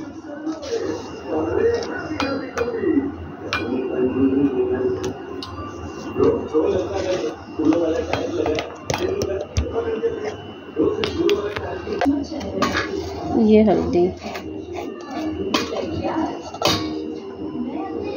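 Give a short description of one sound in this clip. A spoon clinks and scrapes against a metal bowl.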